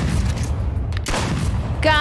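A shotgun fires a single loud blast.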